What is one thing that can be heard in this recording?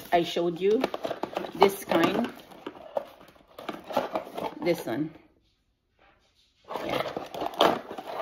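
Cardboard and paper rustle as a box is opened.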